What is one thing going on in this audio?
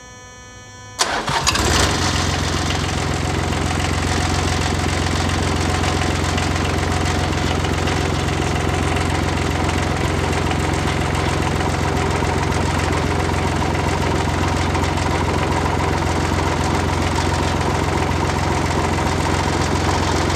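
A diesel engine starts up and runs with a steady loud rumble close by.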